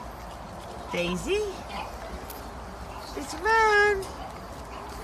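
A small dog whines and yelps in short high cries.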